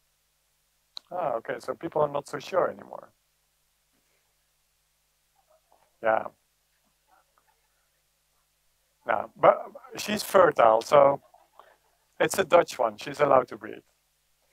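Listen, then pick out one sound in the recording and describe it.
A man speaks calmly into a microphone, with pauses.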